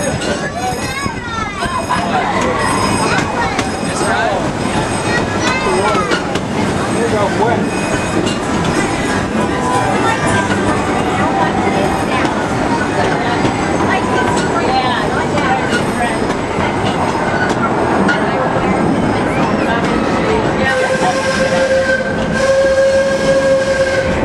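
A ride vehicle rumbles and clatters steadily.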